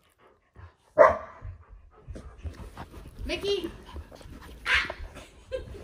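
A small dog barks sharply.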